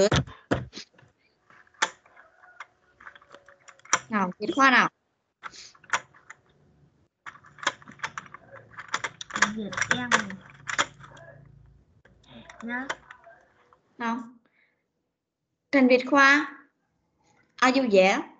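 A child speaks and repeats words over an online call.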